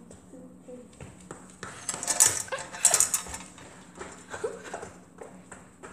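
Footsteps run down a hallway.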